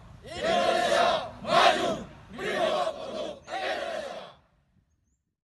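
A large group of men shout a chant together in unison, outdoors.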